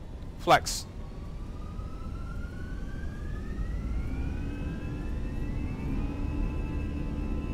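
Jet engines spool up with a rising whine.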